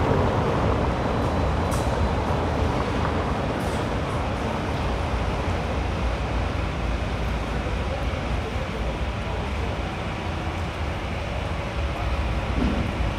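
Tyres rumble over cobblestones as a vehicle drives along slowly.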